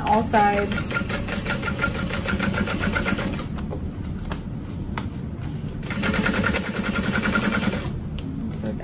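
A sewing machine runs in short, rapid bursts of stitching.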